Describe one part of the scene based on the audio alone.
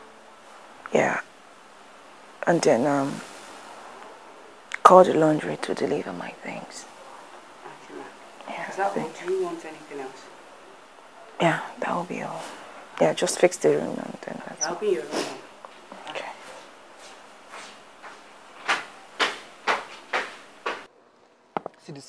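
A young woman speaks tearfully and with emotion, close by.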